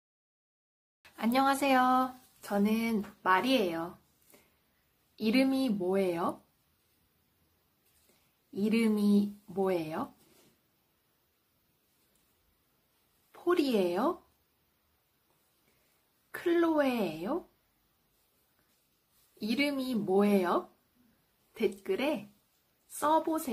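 A young woman speaks clearly and slowly into a close microphone, pausing between phrases.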